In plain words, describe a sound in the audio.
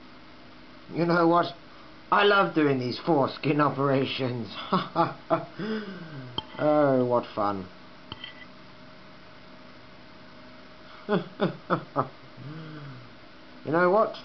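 A man speaks close to the microphone in an animated voice.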